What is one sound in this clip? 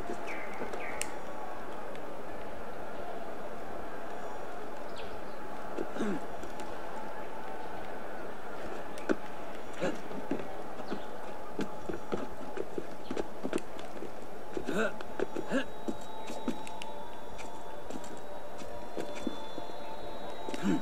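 Hands and feet scrape and tap on stone while climbing.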